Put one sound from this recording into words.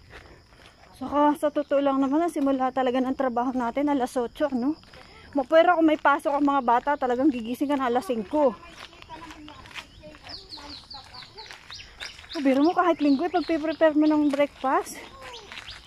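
A woman speaks nearby in a raised, animated voice.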